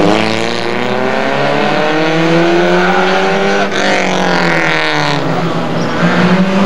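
A small car engine revs hard, rising and falling in pitch as it races close by.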